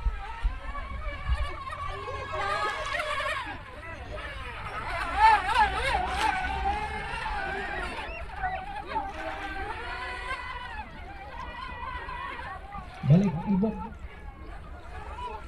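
A small model boat's electric motor whines high over the water, rising and falling in pitch.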